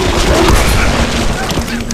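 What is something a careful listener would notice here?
A video game explosion booms.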